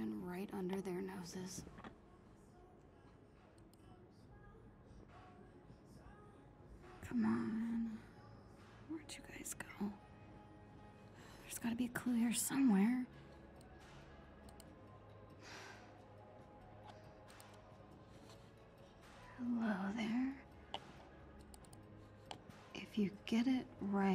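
A young woman talks quietly to herself.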